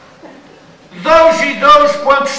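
A middle-aged man answers loudly, in a drawn-out, singing voice.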